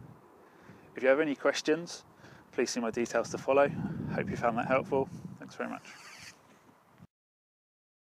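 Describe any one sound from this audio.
A man speaks calmly outdoors.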